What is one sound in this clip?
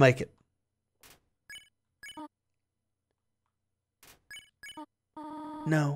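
Short electronic blips sound in quick succession.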